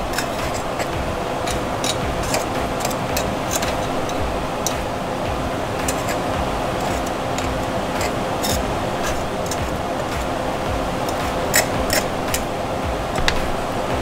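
Batter sizzles and crackles in a hot iron pan.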